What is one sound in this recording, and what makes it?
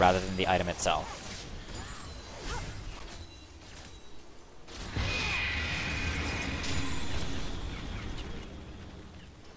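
Magic spells whoosh and crackle during a game battle.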